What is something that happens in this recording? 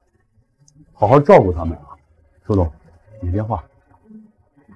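A young man talks on a phone.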